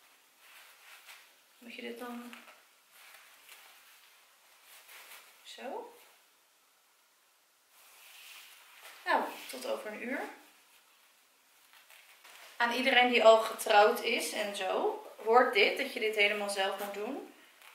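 Fabric rustles as a dress is handled.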